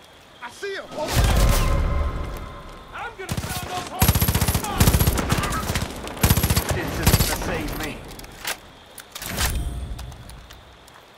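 Rapid gunfire rings out in loud bursts.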